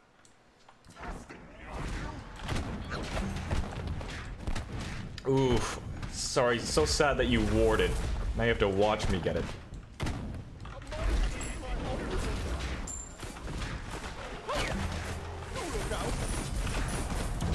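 Weapons clash and strike in a fast game fight.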